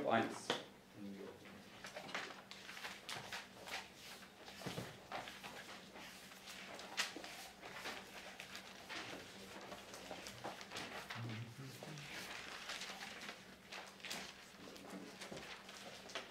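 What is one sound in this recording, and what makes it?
Book pages rustle and turn.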